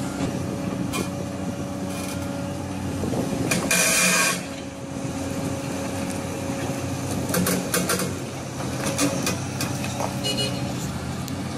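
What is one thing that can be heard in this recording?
A metal excavator bucket scrapes and knocks against stone.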